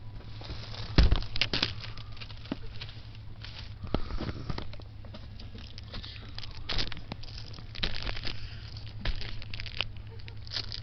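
A plastic basket rattles and knocks as it swings about.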